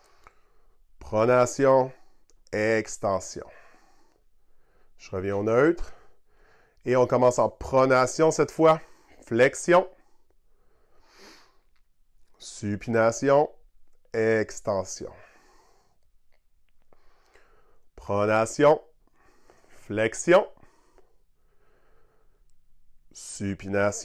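A young man speaks calmly and clearly, with pauses.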